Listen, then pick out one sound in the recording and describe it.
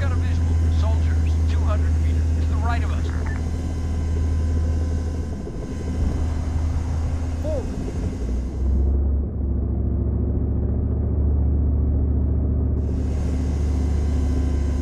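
A helicopter engine drones steadily and loudly.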